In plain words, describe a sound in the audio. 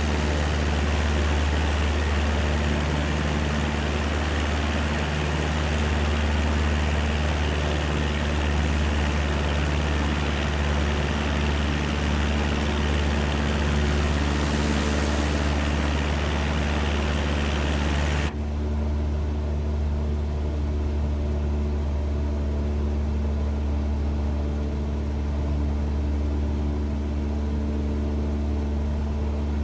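A small propeller plane's engine drones steadily, then sounds muffled.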